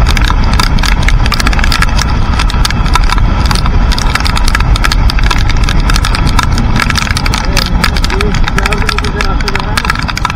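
Raindrops patter and tick on the motorcycle.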